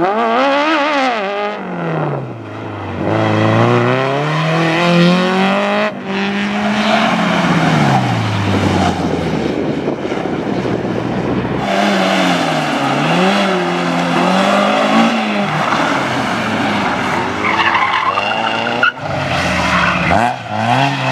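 Small car engines rev hard, rising and falling in pitch as the cars swing through tight turns.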